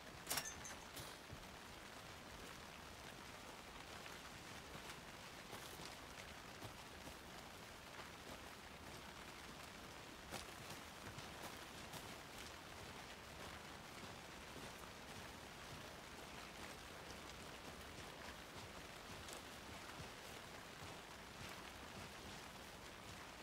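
Footsteps crunch on a gravelly forest path.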